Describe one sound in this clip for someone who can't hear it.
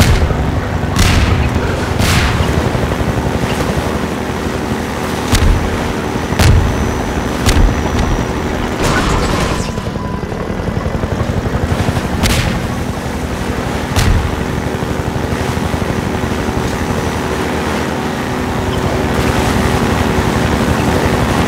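Water splashes and rushes under a boat's hull.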